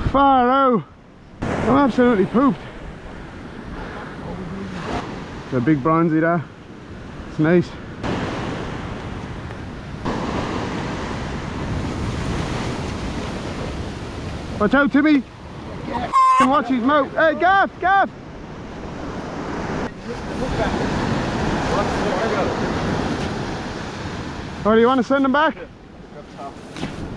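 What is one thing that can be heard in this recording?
Waves break and wash onto the beach.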